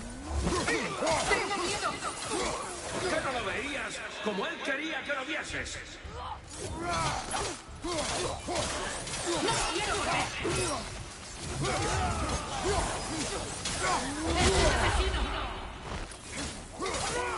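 Chains whip and swish through the air.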